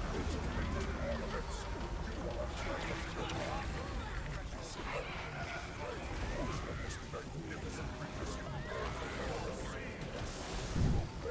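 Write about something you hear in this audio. Game spells crackle and burst with fiery effects.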